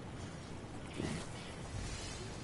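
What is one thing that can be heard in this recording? Water splashes as a figure wades in.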